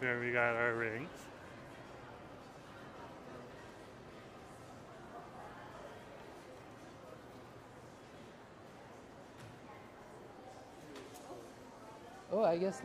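Faint voices murmur in a large echoing hall.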